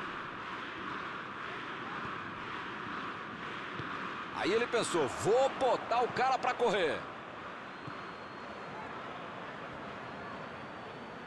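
A large stadium crowd murmurs and cheers.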